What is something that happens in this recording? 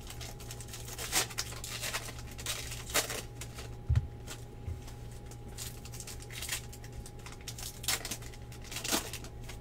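A plastic card wrapper crinkles and rustles as hands handle it.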